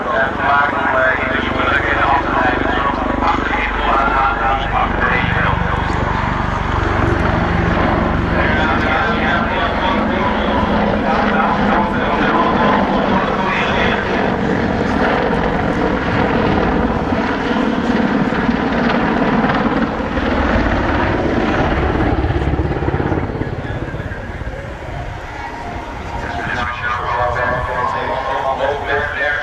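A helicopter engine whines steadily.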